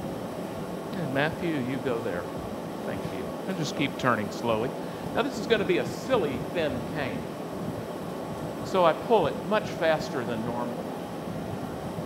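An elderly man talks calmly into a microphone.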